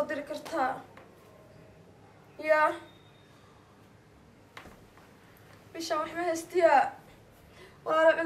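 A young woman talks on a phone nearby in short, calm phrases with pauses.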